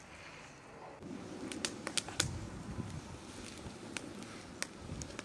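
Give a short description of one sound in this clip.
A wood fire crackles and roars.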